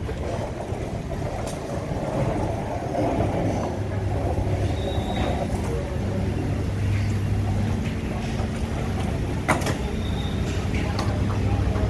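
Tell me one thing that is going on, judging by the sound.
Suitcase wheels rumble across a hard floor.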